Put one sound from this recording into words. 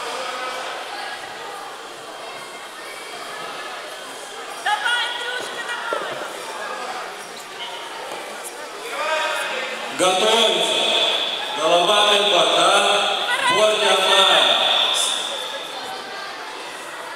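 A crowd murmurs in the background of an echoing hall.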